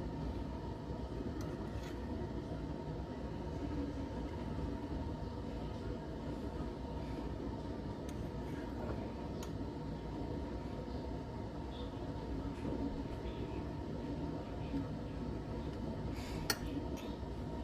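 A spoon clinks against a glass jar.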